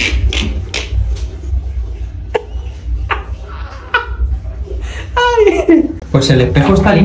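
A man laughs loudly close by.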